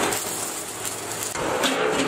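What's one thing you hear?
An electric welder crackles and sizzles.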